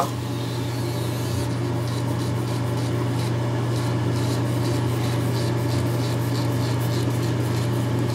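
An electric trimmer buzzes steadily close by.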